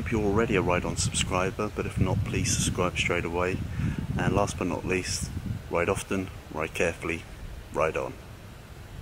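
A middle-aged man talks calmly and close up.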